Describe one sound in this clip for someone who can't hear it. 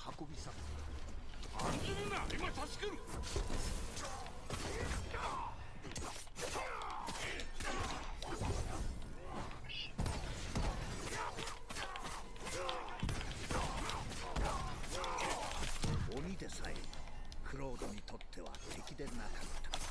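Swords clash and ring in a fast fight.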